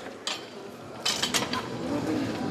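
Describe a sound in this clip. A loaded barbell clanks into a metal rack.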